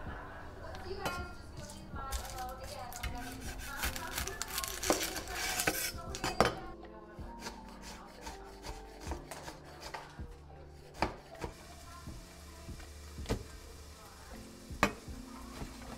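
A knife chops on a metal tray.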